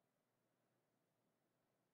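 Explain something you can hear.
A felt marker squeaks faintly across paper.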